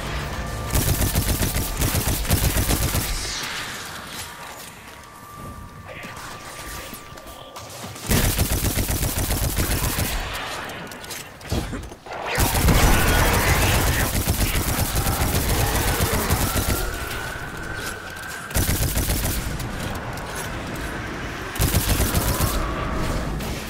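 A rapid automatic gun fires in fast bursts.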